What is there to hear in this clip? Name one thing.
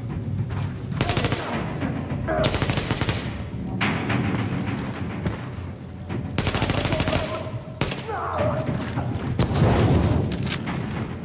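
A rifle fires rapid bursts of shots close by.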